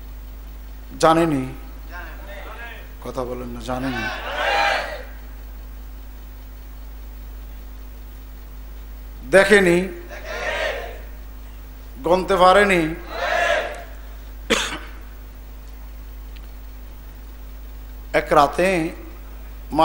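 An elderly man preaches into a microphone in bursts of chanting speech, with long pauses.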